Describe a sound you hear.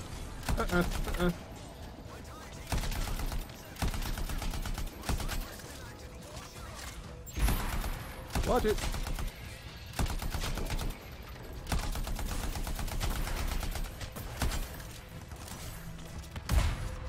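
A rapid-fire gun shoots in loud bursts.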